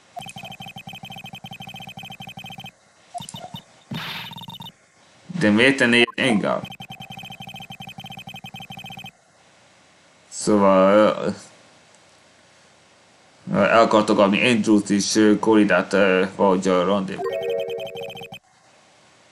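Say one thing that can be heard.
A game plays quick chiming blips as text scrolls.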